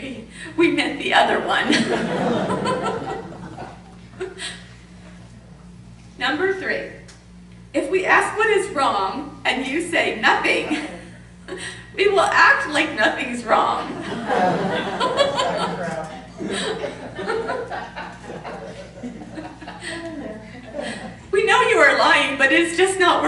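A woman speaks with animation into a microphone in a room with a slight echo.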